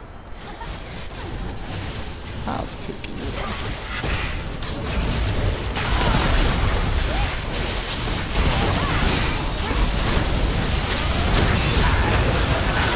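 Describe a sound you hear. Spell blasts and clashing effects from a video game battle grow louder and busier.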